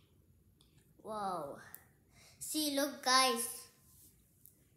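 A young girl speaks close by in a high, playful voice.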